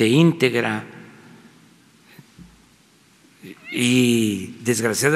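An elderly man speaks slowly and with emphasis into a microphone, in an echoing hall.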